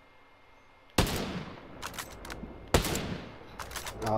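A rifle fires sharp, loud shots that echo away.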